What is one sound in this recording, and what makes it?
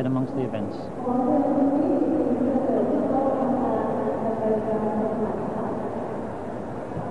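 A marching band plays sustained chords in a large echoing arena.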